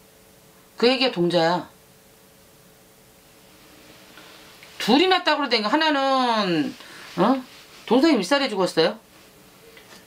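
A middle-aged woman speaks expressively into a nearby microphone, in short bursts with long pauses.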